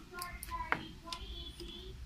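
Plastic parts click and rattle as wires are handled close by.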